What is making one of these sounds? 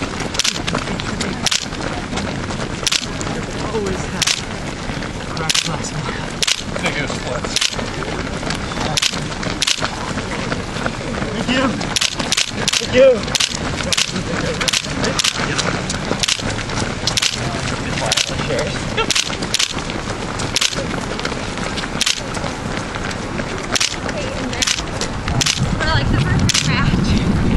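Many runners' shoes patter on asphalt.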